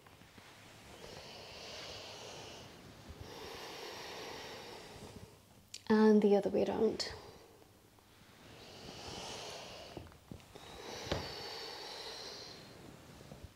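A young woman breathes slowly and deeply in and out.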